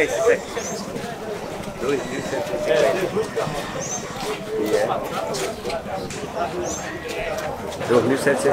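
Several men talk at once nearby, outdoors.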